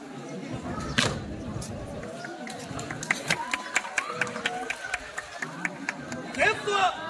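Boots stamp in unison on a hard court.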